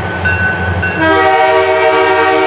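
A train horn blows loudly.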